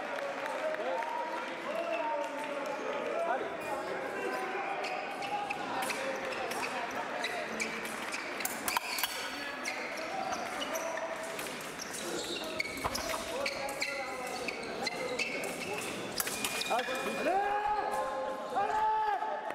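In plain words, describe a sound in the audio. Fencers' shoes squeak sharply on the floor as the fencers move back and forth.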